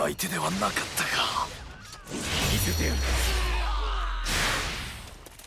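Swords clash and slash with sharp impacts.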